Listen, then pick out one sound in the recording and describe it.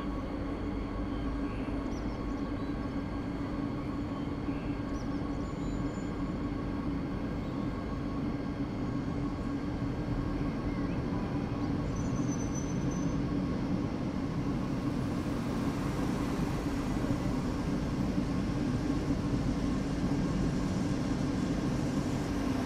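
An electric train hums and rumbles steadily along the rails.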